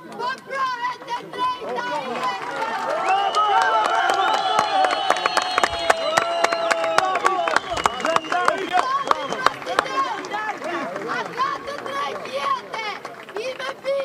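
A crowd shouts and chants loudly outdoors.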